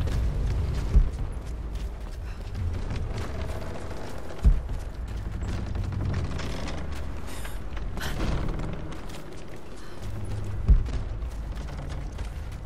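Footsteps crunch on a stone floor.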